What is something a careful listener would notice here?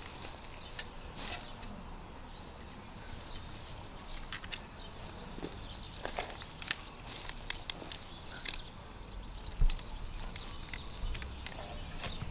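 A spade digs and scrapes into soil.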